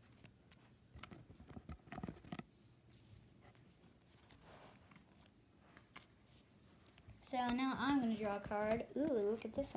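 Playing cards slap and rustle as a hand handles them.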